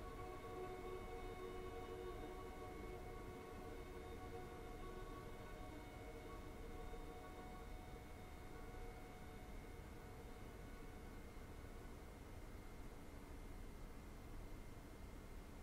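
A choir sings softly, sustained chords ringing in a large hall.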